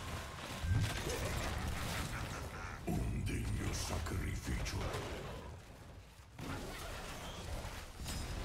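Weapons clash and strike in quick bursts.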